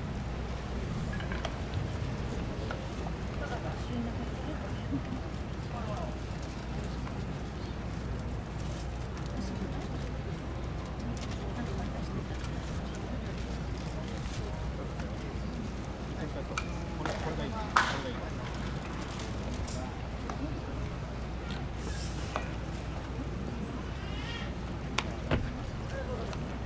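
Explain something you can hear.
Men talk and call out at a distance.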